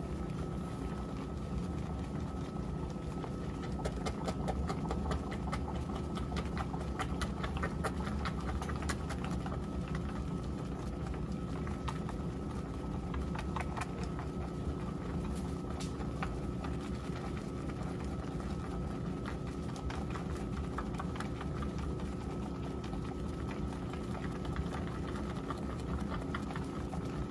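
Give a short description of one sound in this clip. Soapy water sloshes and churns as clothes are agitated back and forth.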